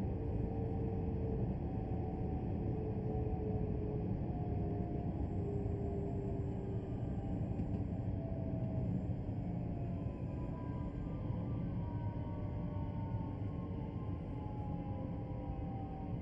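An electric train rumbles steadily along the tracks, its motor whining and slowly falling in pitch as it slows down.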